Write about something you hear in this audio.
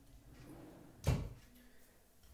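A wooden cabinet door bumps shut with a knock.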